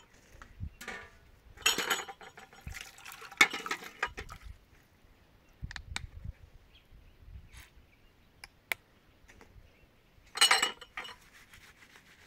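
Hands rub and squeeze food in a metal pot with wet scraping sounds.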